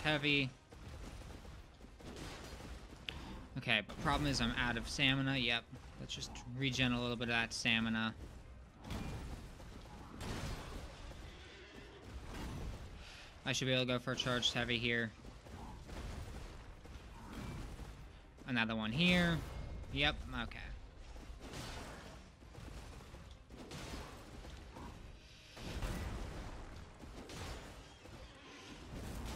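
Metal weapons clang and strike in a fight.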